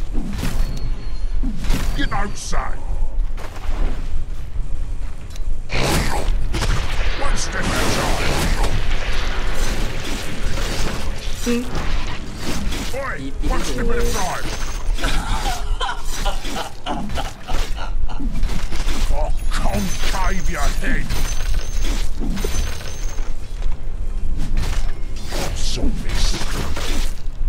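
Game weapons clash and spells burst in a fast battle.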